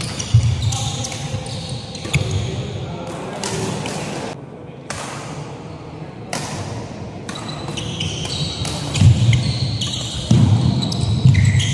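Shoes squeak sharply on a hard court floor.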